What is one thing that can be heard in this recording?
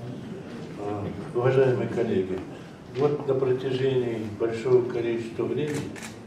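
An elderly man speaks with animation into a microphone over loudspeakers.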